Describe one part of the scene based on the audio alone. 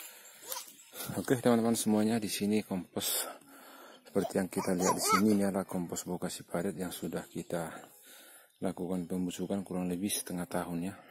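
A young child speaks close by with animation.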